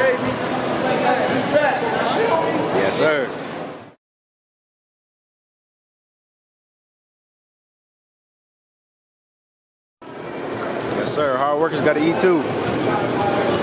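A crowd of people chatter in the background of a large echoing hall.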